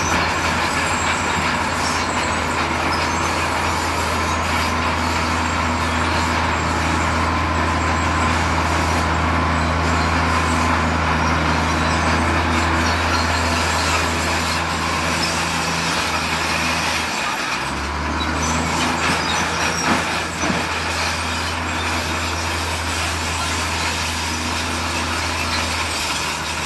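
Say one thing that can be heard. Traffic hums along a road nearby.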